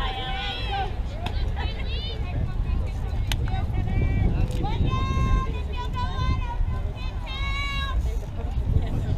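Young women shout and cheer loudly nearby.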